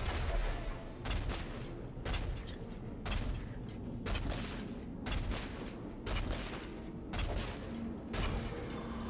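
A bow twangs as arrows are loosed in quick succession.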